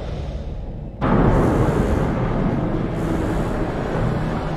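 Water rushes and churns loudly underwater.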